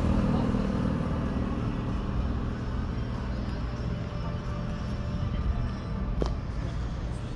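A vehicle engine rumbles low and steady.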